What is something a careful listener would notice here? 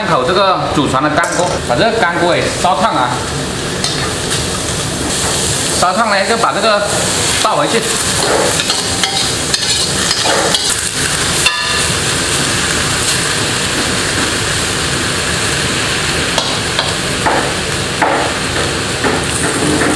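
Food sizzles steadily in a hot wok.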